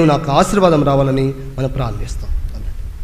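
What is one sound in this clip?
A man speaks loudly into a microphone, heard through loudspeakers.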